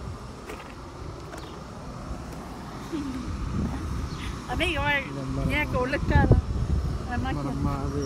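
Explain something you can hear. A young woman giggles close by.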